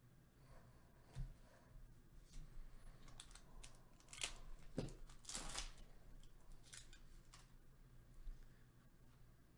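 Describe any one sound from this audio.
Trading cards rustle and slide against each other in someone's hands.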